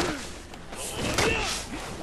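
A burst of energy whooshes past.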